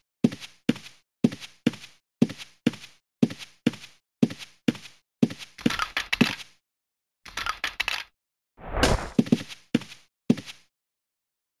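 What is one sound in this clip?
Footsteps thud at an even walking pace.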